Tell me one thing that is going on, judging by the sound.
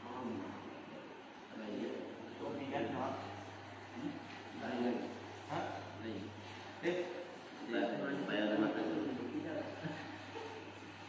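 Several men recite together in a chanting voice, in a large echoing hall.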